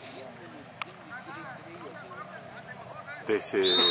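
Players call out to each other across an open field.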